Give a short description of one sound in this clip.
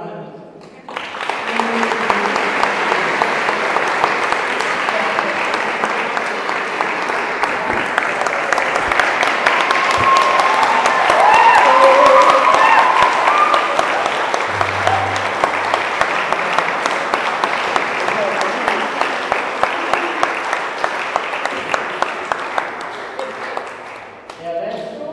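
A crowd applauds loudly, with steady clapping.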